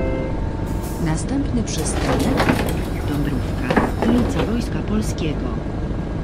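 Bus doors open and close with a hiss.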